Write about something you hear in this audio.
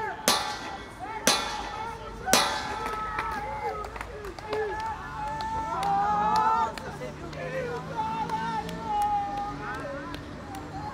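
Several men talk and laugh together outdoors.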